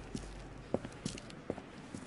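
Footsteps click on pavement.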